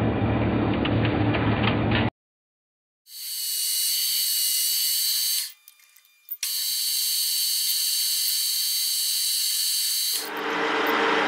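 A cutting tool scrapes against spinning metal with a high whine.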